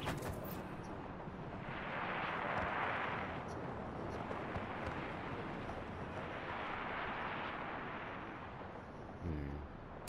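Wind rushes past a wingsuit in a fast glide.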